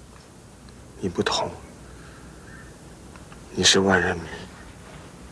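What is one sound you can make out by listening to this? A young man speaks haltingly in a distressed voice.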